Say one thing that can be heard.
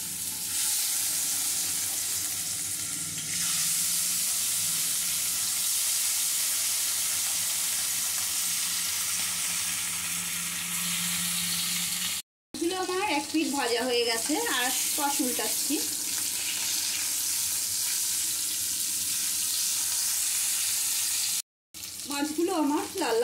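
Fish sizzles and spits as it fries in hot oil.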